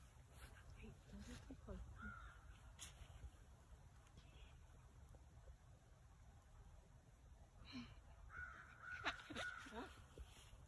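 Wind rumbles faintly outdoors.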